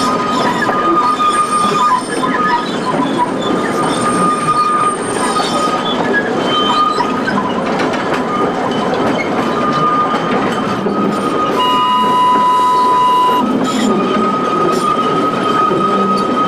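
A small diesel locomotive rumbles steadily as it pulls a train.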